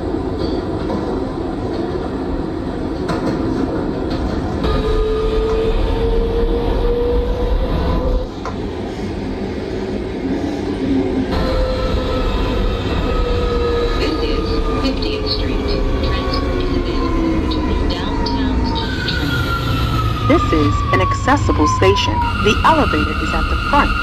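A subway train rumbles and rattles steadily through a tunnel.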